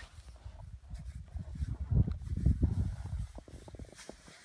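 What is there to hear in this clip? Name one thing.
A man scrapes and digs at packed snow by hand.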